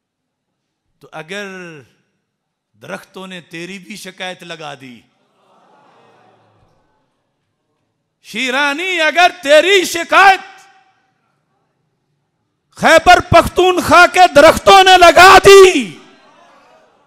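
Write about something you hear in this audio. An elderly man preaches passionately into a microphone, his voice rising to loud, fervent bursts.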